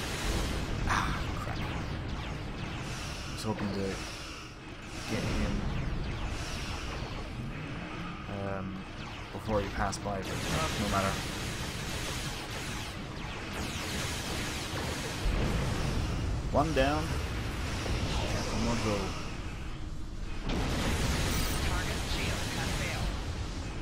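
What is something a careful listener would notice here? Laser weapons fire in rapid bursts.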